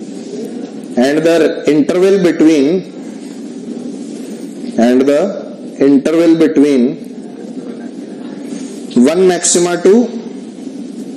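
A man speaks through a clip-on microphone in short bursts with pauses between.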